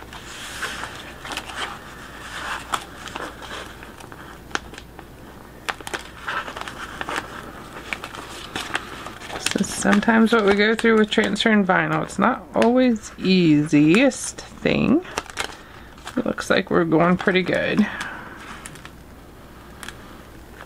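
Plastic film crinkles and rustles as it is peeled and handled.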